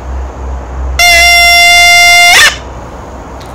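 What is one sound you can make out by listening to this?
A man blows a ram's horn in one long, steady, piercing blast.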